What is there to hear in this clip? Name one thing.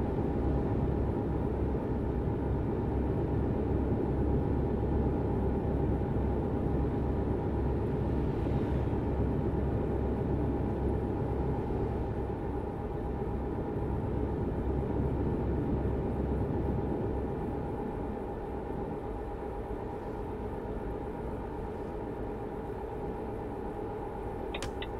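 A heavy diesel truck engine drones while cruising at highway speed.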